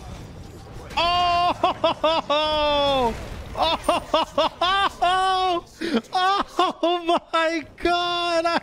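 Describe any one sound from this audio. A young man shouts and exclaims loudly close to a microphone.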